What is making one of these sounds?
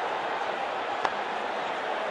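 A cricket bat strikes a ball with a sharp crack.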